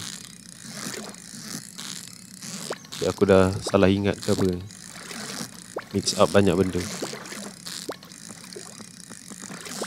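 A fishing reel whirs steadily.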